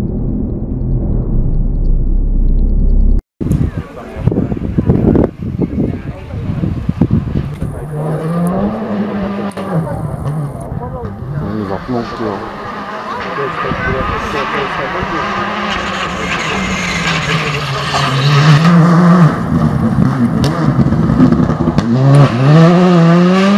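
A rally car engine roars and revs hard as the car races past.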